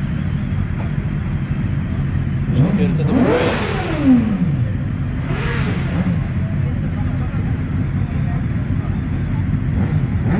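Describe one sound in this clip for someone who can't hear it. Several motorcycle engines idle with a steady low rumble.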